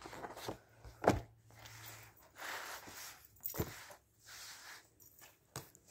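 Magazines slap down onto a table.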